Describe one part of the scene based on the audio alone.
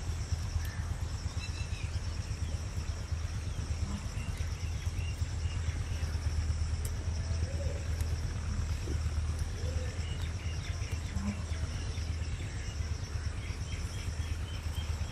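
Bread sizzles softly in a hot pan.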